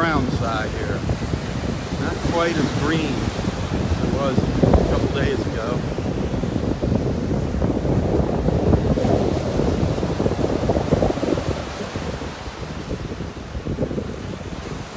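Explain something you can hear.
Waves break and wash up onto a beach.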